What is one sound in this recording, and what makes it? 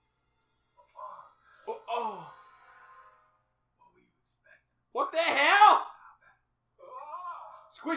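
A young man makes exaggerated vocal noises close by.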